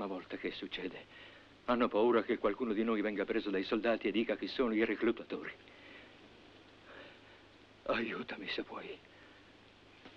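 An elderly man speaks hoarsely in pain, close by.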